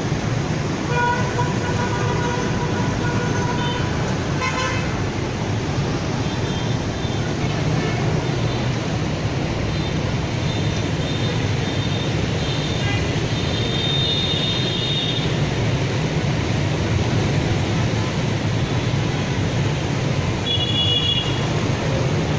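Vehicle horns honk now and then.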